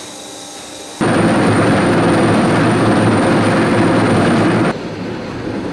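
A concrete saw grinds loudly through pavement.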